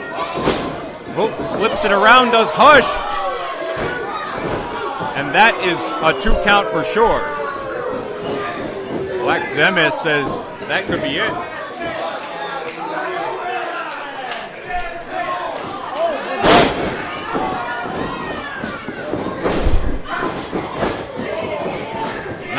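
A crowd of men and women shouts and cheers in an echoing hall.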